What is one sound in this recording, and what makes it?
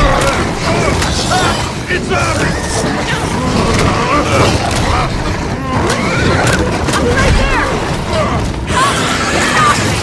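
A monster growls and snarls up close.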